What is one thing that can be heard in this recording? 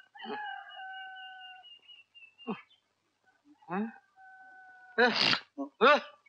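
An elderly man cries out loudly in distress.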